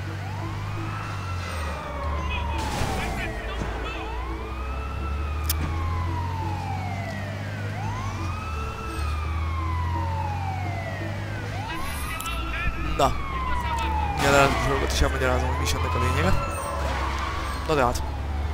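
A police siren wails in rising and falling sweeps.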